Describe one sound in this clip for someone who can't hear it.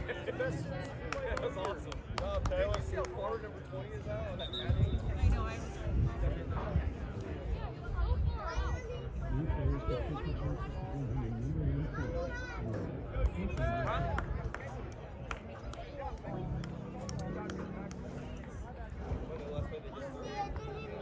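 A crowd of spectators chatters and calls out nearby, outdoors.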